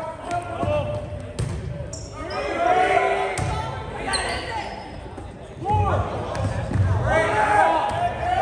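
Volleyball players shout and call to each other in an echoing gym.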